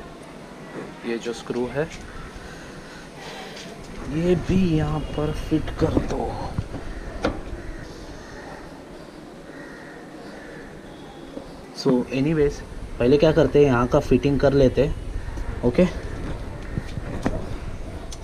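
Small metal parts click and tap against a motorcycle.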